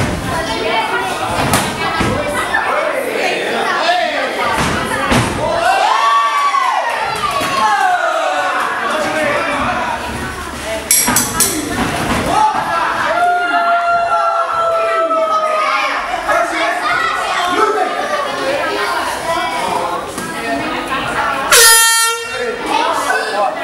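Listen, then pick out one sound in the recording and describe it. A crowd shouts and cheers loudly in an echoing hall.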